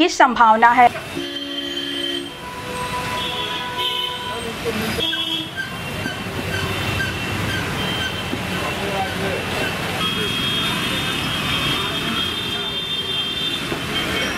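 Rain patters steadily on a wet street.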